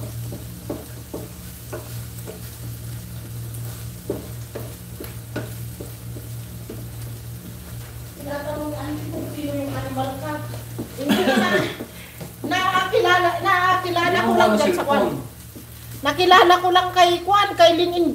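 Food sizzles in a hot pan.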